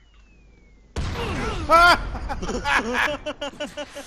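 A loud blast bursts out with a roar.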